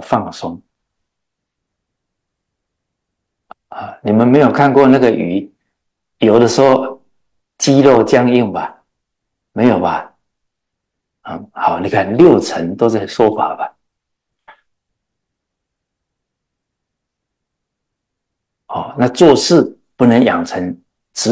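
An elderly man speaks with animation into a microphone, with pauses.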